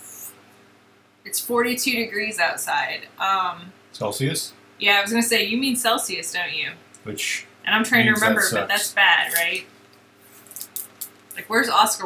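A young person talks and laughs through a microphone.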